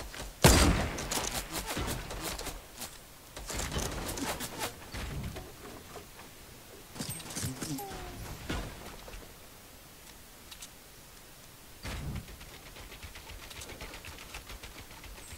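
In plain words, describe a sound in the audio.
Wooden panels clatter into place in quick bursts.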